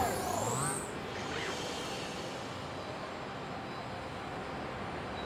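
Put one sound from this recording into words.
Wind rushes steadily past a gliding flyer.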